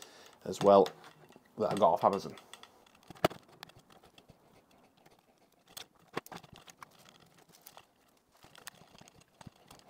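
Plastic parts click and knock as they are handled.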